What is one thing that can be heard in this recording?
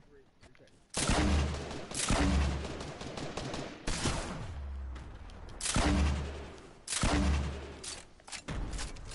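Gunfire crackles and booms in bursts.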